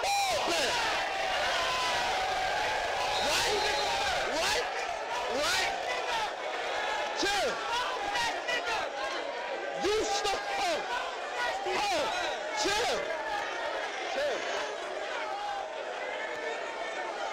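A young man raps forcefully into a microphone.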